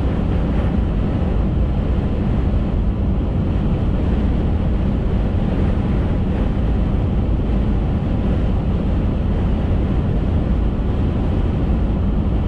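A car's engine hums steadily as it drives at speed.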